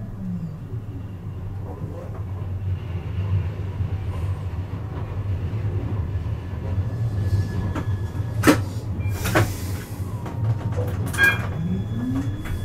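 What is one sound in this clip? A tram rumbles steadily along the rails.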